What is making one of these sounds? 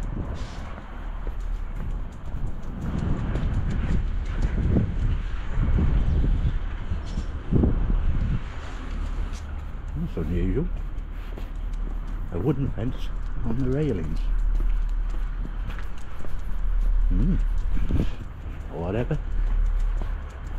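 Wind buffets outdoors with a low, steady rumble.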